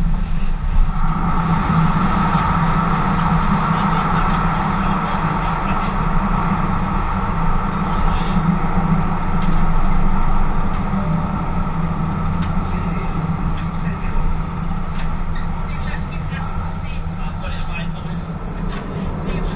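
A train roars louder and hums as it runs through a tunnel.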